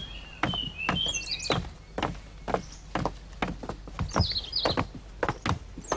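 Footsteps tap on wooden stairs.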